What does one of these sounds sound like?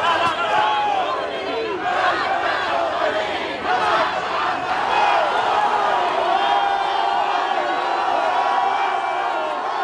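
A large crowd chants and shouts loudly outdoors.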